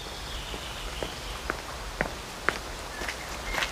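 Footsteps crunch on gravel as a man approaches.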